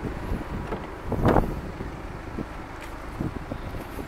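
A car door unlatches with a clunk and swings open.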